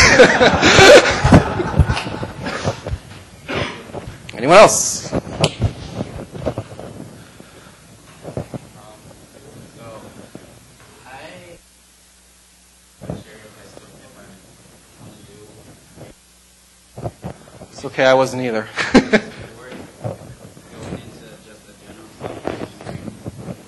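A man speaks to an audience through a microphone in a large room.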